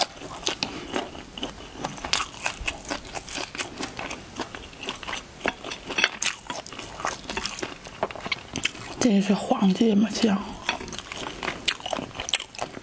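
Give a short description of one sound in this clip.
Wet, sticky crackles and smacks sound close to a microphone as fingers handle food.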